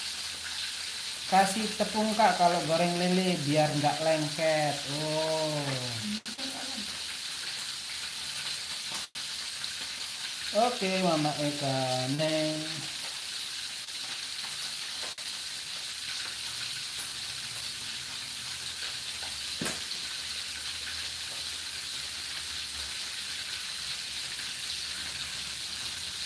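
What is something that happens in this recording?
Fish sizzles and crackles in hot oil.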